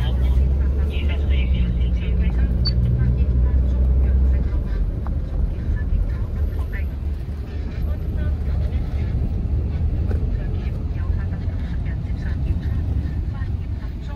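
A young woman speaks softly, close by.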